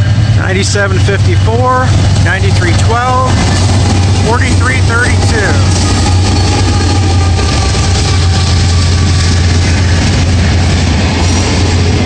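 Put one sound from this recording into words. Diesel locomotives rumble loudly as they pass close by.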